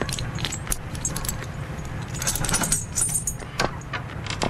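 A metal chain rattles against a padlock.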